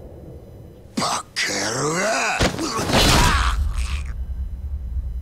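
A man shouts angrily up close.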